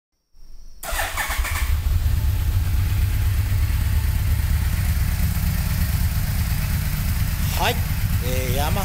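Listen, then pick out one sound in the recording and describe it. A motorcycle engine starts and idles with a deep, steady rumble close by.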